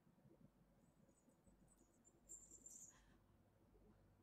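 Handcuffs clink and rattle.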